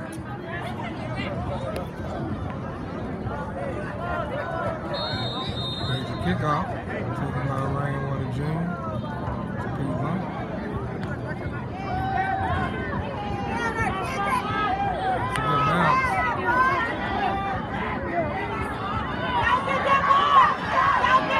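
A crowd of spectators and players chatters and cheers outdoors.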